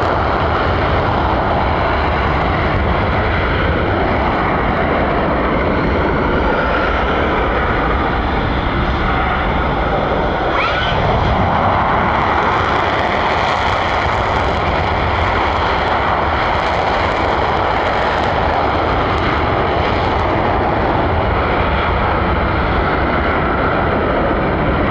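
A jet engine roars loudly and steadily in the distance, heard outdoors.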